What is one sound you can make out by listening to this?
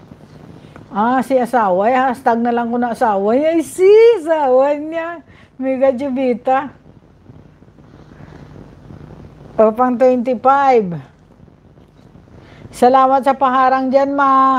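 A middle-aged woman sings into a microphone close by.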